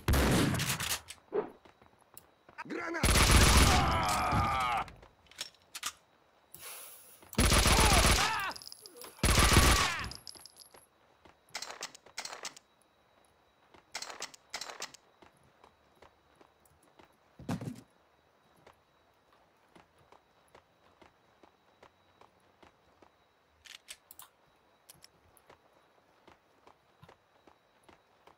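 Footsteps patter on a hard floor.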